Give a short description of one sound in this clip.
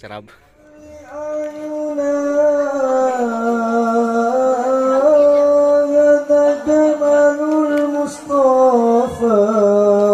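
Boys sing together through microphones.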